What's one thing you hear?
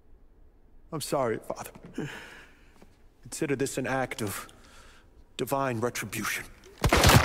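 A young man speaks in a calm, mocking tone.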